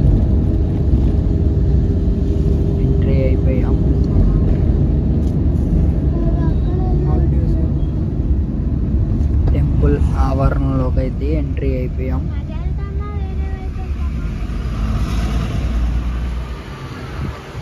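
A car engine hums low and steady with road rumble from inside the car.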